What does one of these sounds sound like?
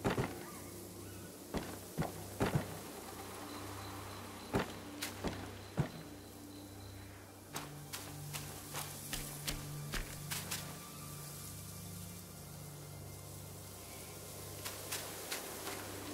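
Footsteps thud on dirt and stone steps.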